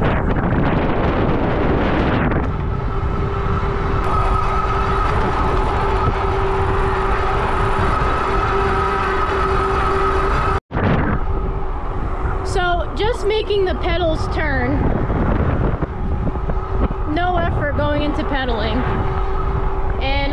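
Wind buffets and rumbles loudly against the microphone.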